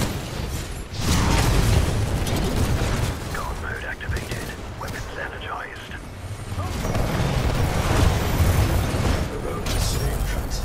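Explosions boom with deep rumbling blasts.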